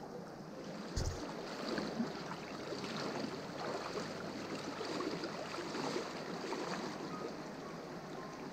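Water splashes and swirls around a man's legs as he wades in a river.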